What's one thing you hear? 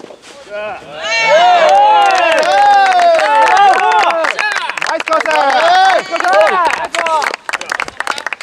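Young men shout and cheer loudly close by.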